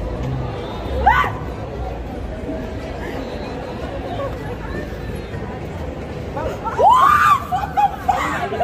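A young woman shrieks in fright close by.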